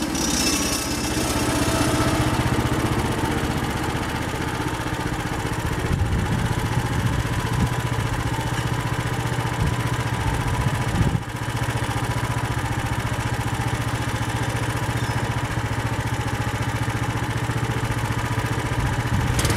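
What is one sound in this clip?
A sawmill engine runs with a steady loud drone.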